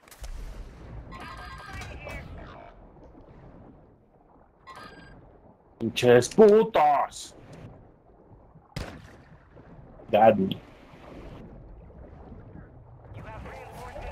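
Water splashes and bubbles as a swimmer dives underwater.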